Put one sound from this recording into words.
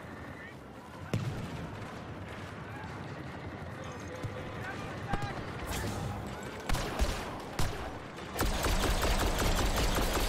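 Gunfire and blasts ring out from a video game.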